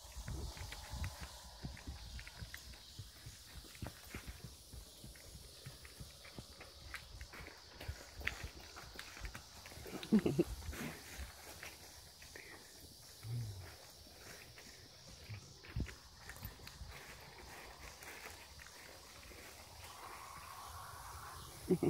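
Hooves thud softly on grass as a foal walks.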